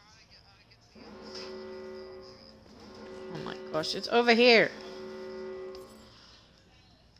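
A steady electronic warning tone drones.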